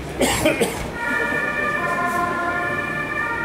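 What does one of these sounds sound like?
An ambulance siren wails close by.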